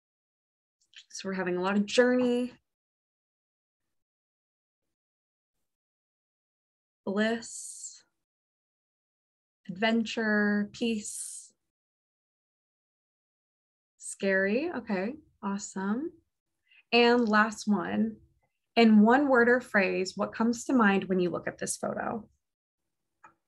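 A young woman speaks calmly through an online call, with pauses.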